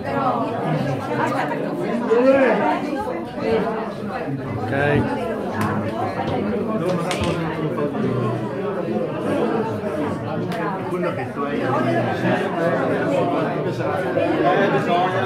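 A group of adults chat and murmur all around.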